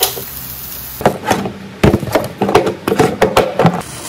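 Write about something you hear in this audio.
Plastic food containers clatter and knock as they are handled.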